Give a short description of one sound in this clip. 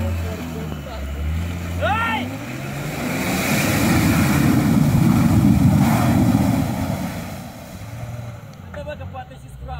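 An off-road engine rumbles and revs.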